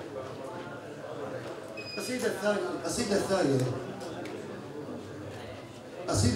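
A middle-aged man reads aloud into a microphone.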